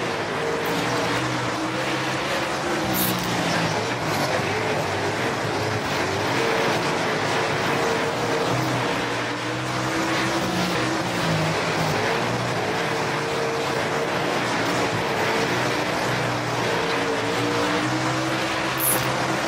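A race car engine roars and revs up and down steadily.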